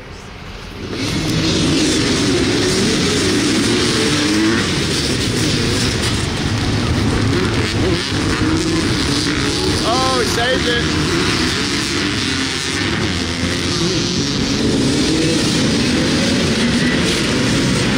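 Many dirt bike engines roar in the distance as a race starts.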